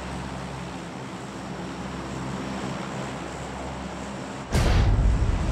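Aircraft propeller engines drone steadily.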